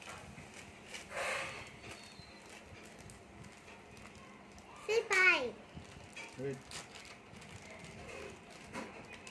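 A plastic bag crinkles in hands.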